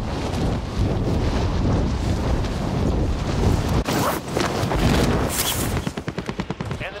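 Wind rushes loudly during a fall through the air.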